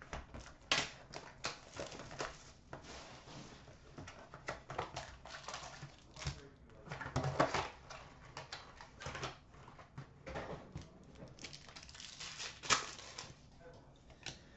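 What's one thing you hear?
Trading card packs rustle and crinkle as hands handle them.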